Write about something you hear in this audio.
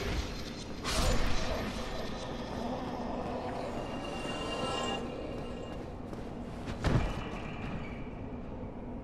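Armoured footsteps clank and thud on stone.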